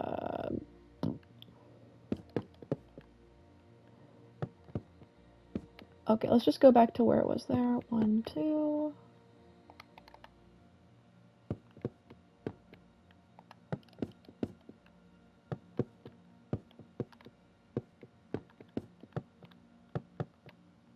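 Wooden blocks are placed one after another with soft, short knocks.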